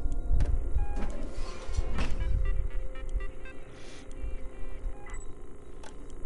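A computer terminal beeps and chirps as it boots up.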